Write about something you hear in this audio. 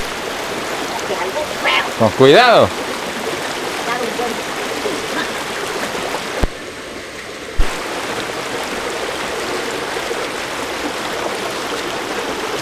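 A shallow stream rushes steadily over rocks.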